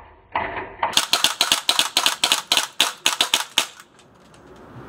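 A pistol fires rapid shots in quick succession.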